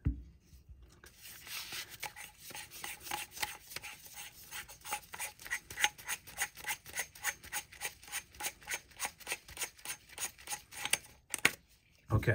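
A metal tube ticks and clicks rapidly as it is screwed onto a threaded part.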